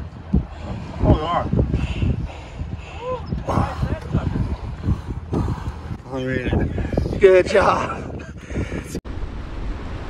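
A young man talks cheerfully close by.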